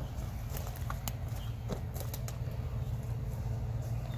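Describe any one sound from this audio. Footsteps crunch on dry stalks and soil.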